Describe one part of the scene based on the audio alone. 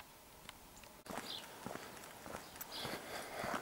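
Footsteps crunch on a gritty road.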